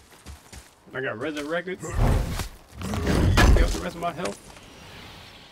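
Heavy game blows and crashes boom loudly.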